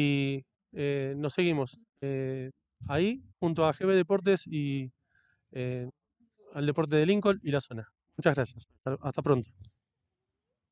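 An elderly man speaks into a handheld microphone with animation, close up.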